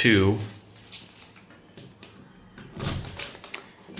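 A metal key clicks as it turns in a key switch.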